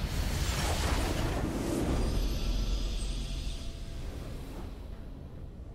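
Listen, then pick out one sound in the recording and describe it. A triumphant game fanfare swells loudly and then fades away.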